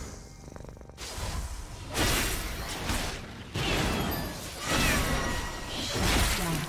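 Magic spell effects whoosh and crackle in short bursts.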